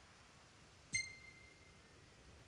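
A short bright chime rings once as a choice is confirmed.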